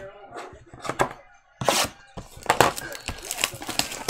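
A cardboard box is handled and bumped.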